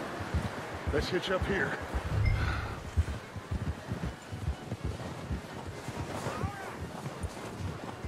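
Horses' hooves thud steadily through snow.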